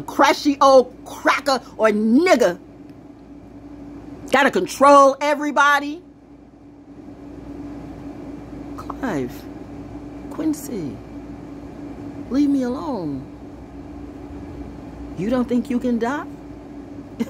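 A middle-aged woman speaks close up, with feeling and pauses.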